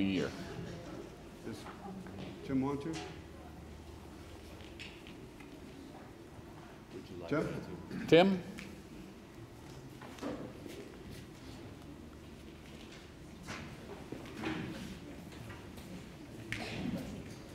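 An older man speaks through a microphone in a large room, pausing often.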